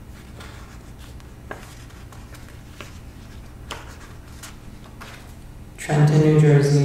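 Paper rustles as pages are handled close by.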